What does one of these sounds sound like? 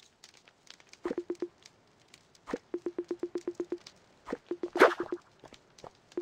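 Rapid electronic blips chatter in quick bursts.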